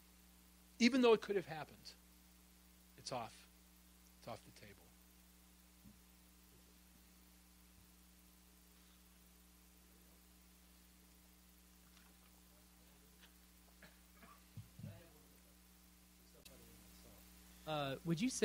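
A man speaks into a microphone in a large room, in short bursts with long pauses.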